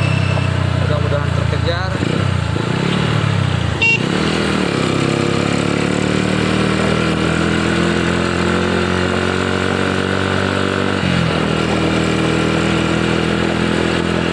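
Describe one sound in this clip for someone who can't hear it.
A vehicle engine hums steadily close by, shifting pitch as it changes gear.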